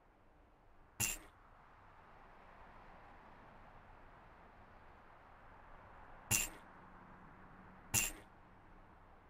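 A short electronic sound effect plays several times.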